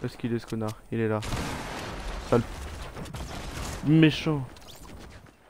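A young man talks excitedly into a microphone.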